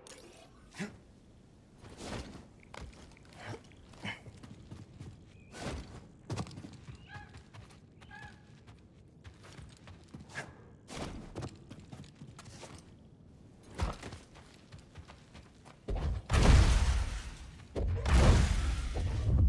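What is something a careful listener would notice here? Footsteps scuff and thud on rocky ground.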